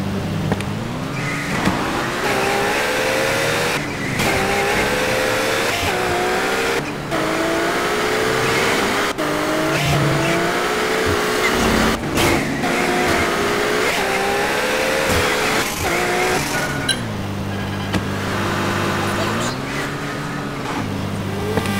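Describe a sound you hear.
A car engine revs up and down as it speeds along.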